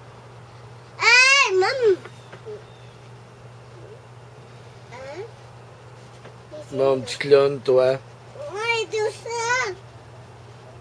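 A young child talks close by in a high, sing-song voice.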